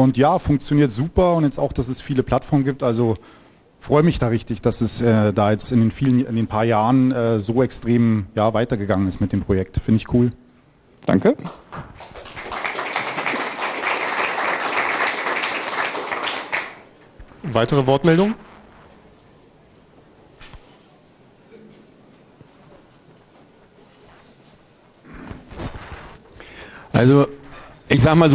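A man speaks calmly into a microphone, amplified in an echoing room.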